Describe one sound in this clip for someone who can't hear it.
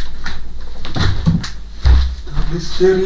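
A man steps down heavily onto the floor.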